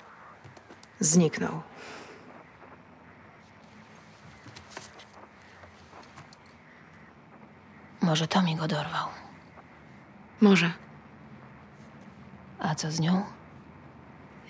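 A young woman speaks quietly and calmly nearby.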